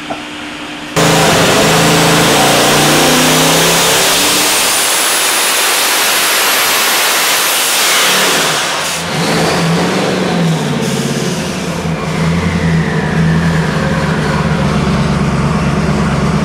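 A turbocharged engine roars loudly at full throttle, then drops back to a rough idle.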